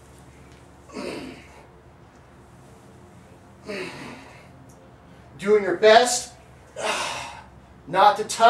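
A man exhales sharply with effort.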